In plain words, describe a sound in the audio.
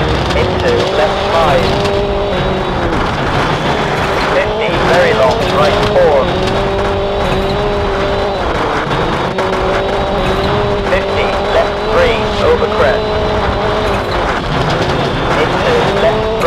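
Tyres skid and squeal on loose gravel.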